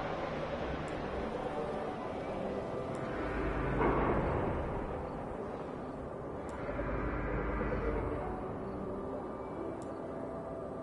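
Soft menu clicks tick now and then as a cursor moves between items.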